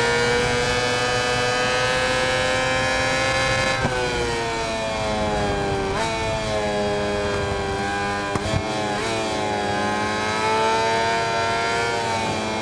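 A racing motorcycle engine screams at high revs, dropping in pitch with each downshift and climbing again.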